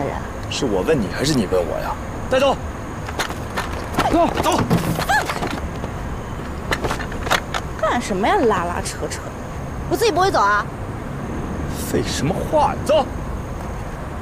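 A young man speaks firmly, close by.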